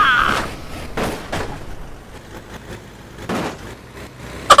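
A semi trailer's wheels thump over speed bumps.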